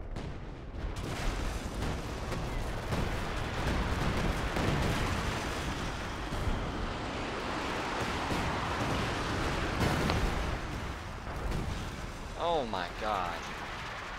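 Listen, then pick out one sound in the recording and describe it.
Shells explode nearby with heavy, rumbling booms.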